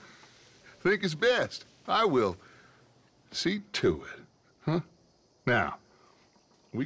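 A man speaks calmly and persuasively.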